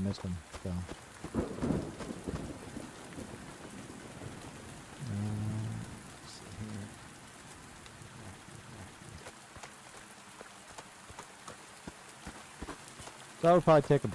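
Footsteps crunch slowly on a gravel path.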